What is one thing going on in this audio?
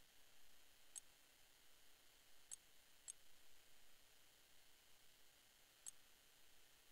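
Short soft clicks sound as a menu selection moves.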